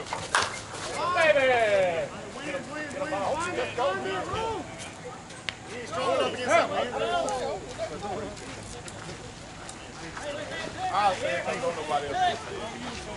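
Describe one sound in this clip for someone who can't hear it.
Men nearby shout and cheer outdoors.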